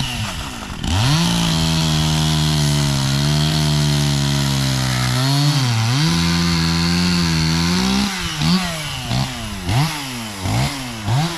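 A chainsaw engine runs loudly, revving up and down.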